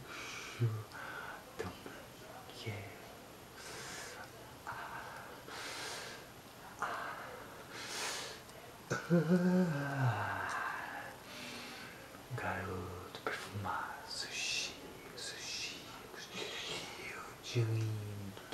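A young man talks softly and close by.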